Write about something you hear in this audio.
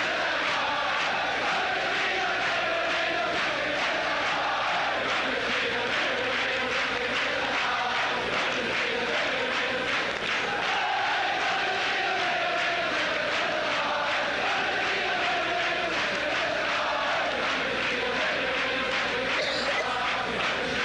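A large crowd of men sings loudly together in an echoing hall.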